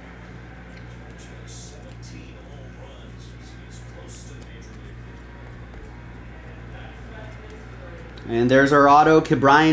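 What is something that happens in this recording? Trading cards rustle and slide as they are shuffled.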